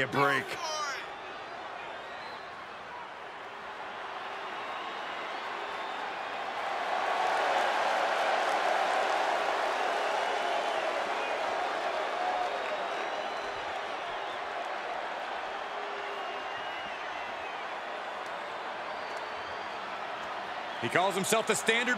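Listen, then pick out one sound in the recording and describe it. A large crowd cheers and roars in a big open arena.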